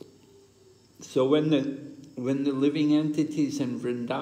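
An elderly man speaks close by.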